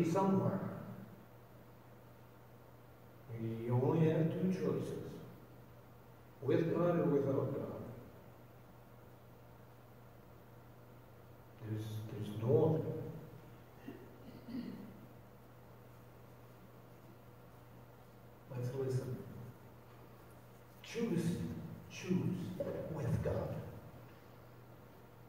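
A man speaks calmly through a microphone in a large echoing hall, pausing between phrases.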